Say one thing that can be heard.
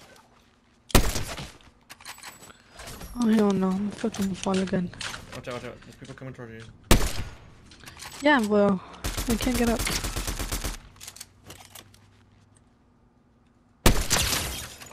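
A rifle fires loud single shots.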